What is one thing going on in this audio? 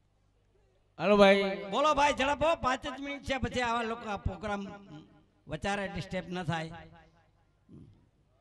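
An elderly man speaks with animation into a microphone, heard through loudspeakers.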